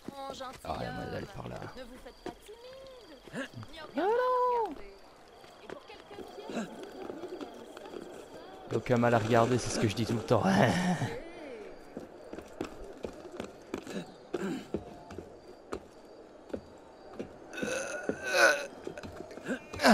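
Hands scrape and grip on a stone wall during a climb.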